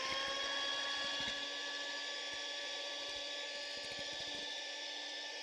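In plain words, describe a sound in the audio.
An electric mixer whirs steadily at high speed.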